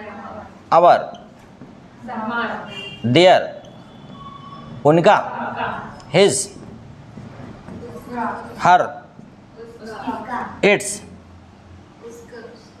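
A man speaks aloud in short, emphatic bursts.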